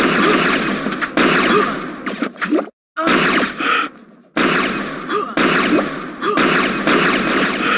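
A weapon fires sharp energy shots.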